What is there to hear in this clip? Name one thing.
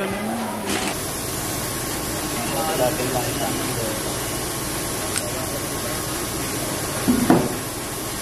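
Metal tubes click together.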